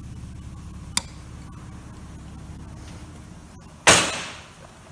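Plastic parts click and snap together close by.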